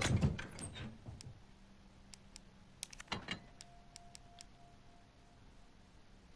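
Short menu clicks sound.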